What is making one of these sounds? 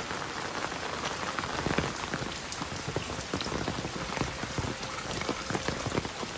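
Rainwater drips and splashes from a roof edge.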